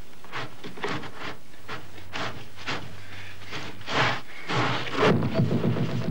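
A door scrapes heavily across a thick carpet.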